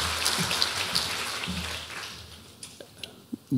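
An audience applauds in a large hall and the clapping fades.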